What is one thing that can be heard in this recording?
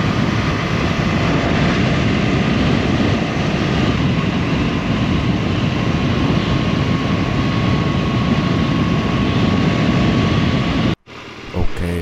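Wind roars loudly past a motorcycle rider.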